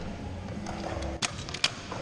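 Scooter wheels roll over concrete.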